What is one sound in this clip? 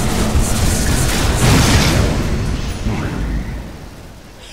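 Game spell effects crackle and burst in quick succession.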